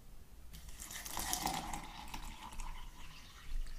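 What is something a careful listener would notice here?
Water pours into a container.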